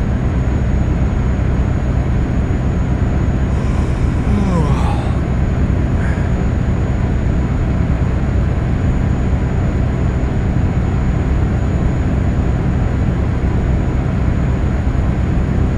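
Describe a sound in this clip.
A truck engine drones steadily at a low pitch while driving.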